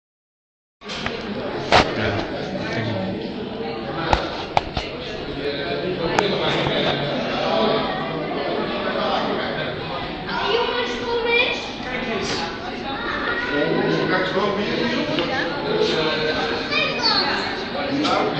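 Many people chatter and talk nearby in an echoing space.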